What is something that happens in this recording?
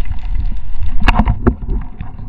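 A speargun fires with a sharp snap underwater.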